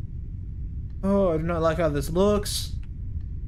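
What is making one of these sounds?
A young man speaks into a headset microphone with animation.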